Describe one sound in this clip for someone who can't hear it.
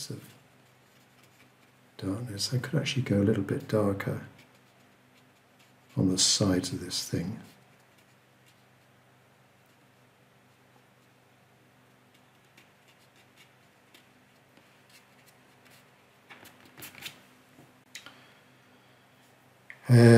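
A paintbrush dabs on watercolour paper.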